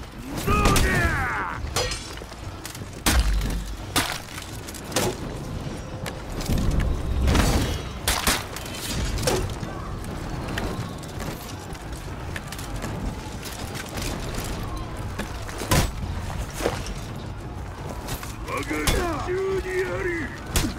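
Warriors grunt and shout as they fight.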